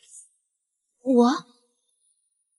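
A young woman exclaims briefly with surprise, close by.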